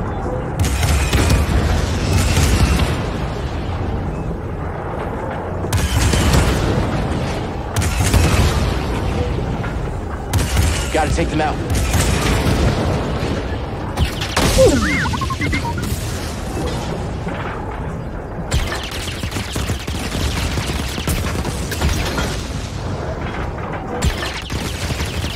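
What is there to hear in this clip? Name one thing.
Laser blasts zap in quick bursts.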